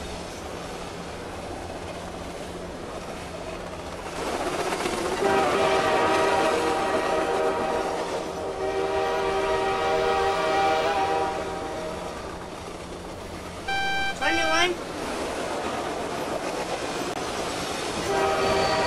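A train engine drones steadily.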